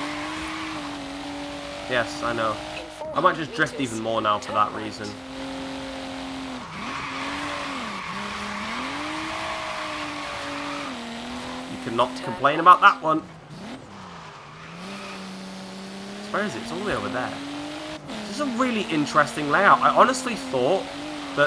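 A car engine roars steadily, its pitch rising and falling as the car speeds up and slows down.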